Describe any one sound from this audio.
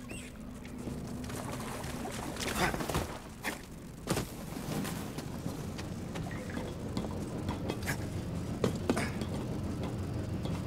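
Quick footsteps thud on the ground.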